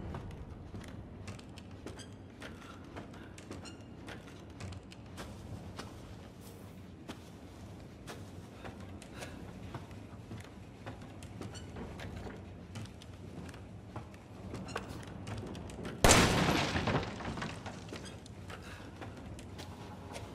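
Footsteps thud slowly on wooden boards.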